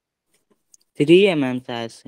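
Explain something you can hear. A young man speaks briefly through an online call.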